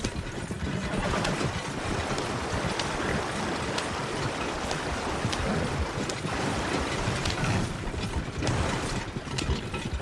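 Water splashes under a wagon's wheels.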